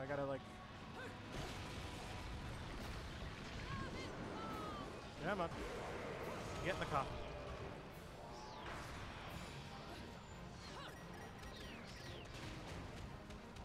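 Swords clash and slash in a video game fight.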